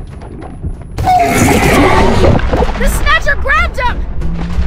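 A monstrous creature shrieks and roars.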